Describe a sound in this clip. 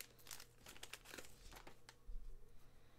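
A plastic wrapper crinkles and rustles as it is torn open.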